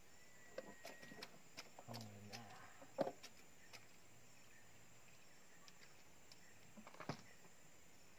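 Light knocks sound against a wooden boat hull.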